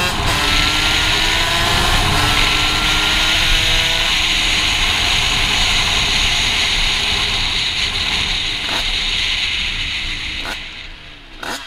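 A motorcycle engine revs and roars up close.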